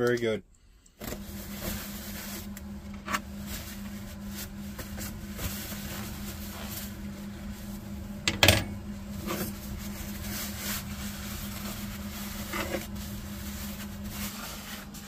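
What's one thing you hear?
A paper towel rustles and rubs across a plate.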